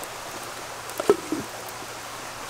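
A clay lid clinks onto a pot.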